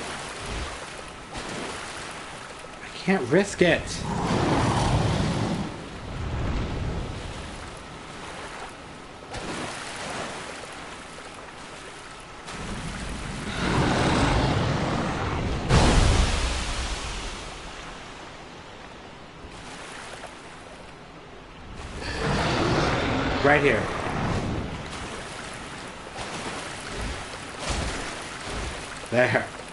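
Water splashes as a knight wades through it.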